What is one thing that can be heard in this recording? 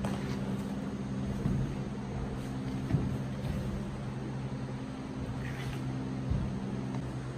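Feet thump and shuffle on a wooden floor.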